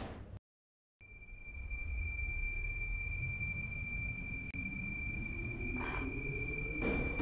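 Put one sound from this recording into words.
An electric metro train pulls away, its motors whining upward in pitch.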